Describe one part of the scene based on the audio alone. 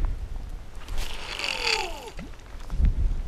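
A fishing reel whirs as line spins out.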